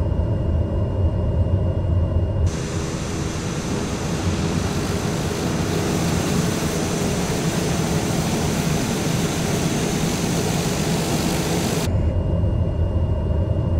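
A propeller plane's engine hums low and muffled, as if heard from inside the cockpit.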